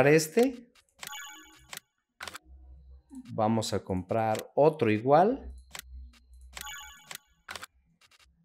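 A short electronic menu chime plays.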